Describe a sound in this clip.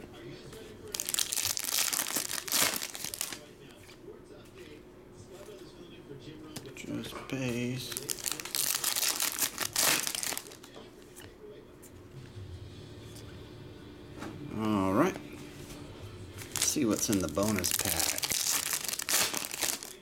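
Foil card packs crinkle and tear open up close.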